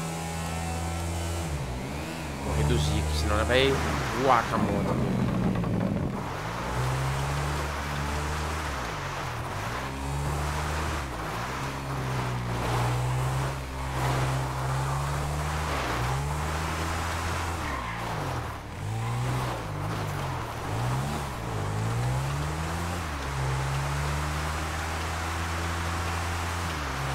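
A motorcycle engine hums steadily, revving up and dropping as gears shift.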